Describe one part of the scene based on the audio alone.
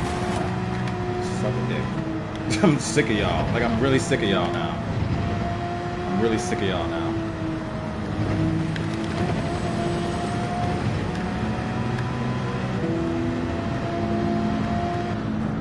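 A racing car engine drones steadily, its pitch stepping up and down with gear changes.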